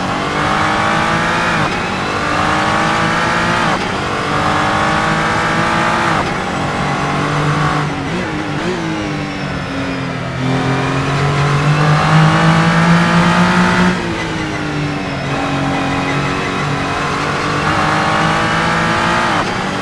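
A racing car engine revs hard and rises in pitch, dropping sharply with each gear shift.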